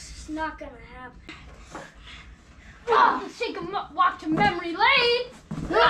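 Bodies thump against a couch during a playful scuffle.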